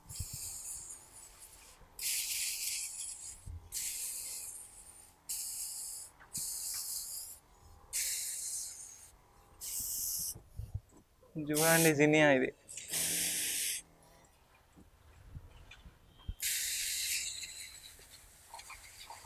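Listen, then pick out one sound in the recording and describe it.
A hand sprayer hisses out water in short repeated bursts.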